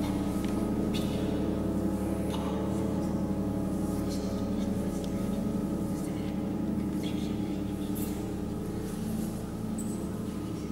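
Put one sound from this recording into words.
Dancers' feet and bodies thud and scrape on a wooden floor in an echoing hall.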